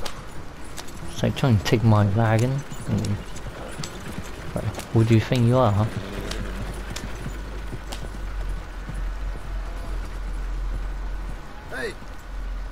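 Horse hooves clop on dirt.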